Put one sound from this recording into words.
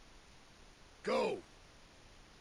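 A man speaks briefly in a low, gruff voice, close by.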